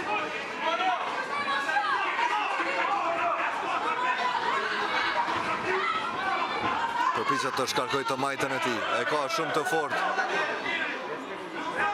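A crowd of spectators shouts and cheers loudly in a large hall.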